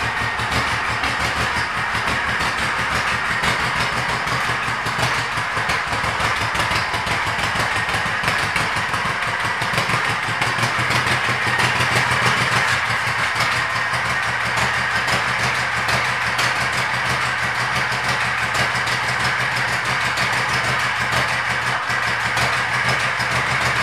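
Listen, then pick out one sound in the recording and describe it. A motorcycle engine idles with a steady, throbbing rumble.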